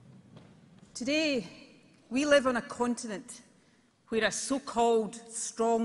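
A woman speaks firmly into a microphone over loudspeakers.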